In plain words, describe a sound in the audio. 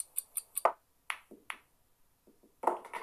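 Pool balls knock against each other and the cushions.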